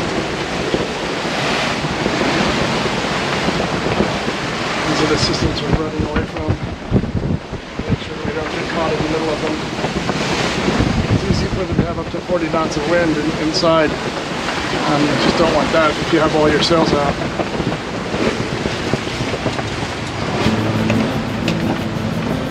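Waves rush and splash against a sailing boat's hull.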